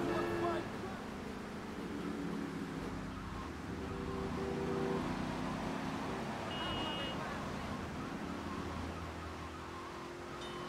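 A car engine roars steadily as the car speeds along.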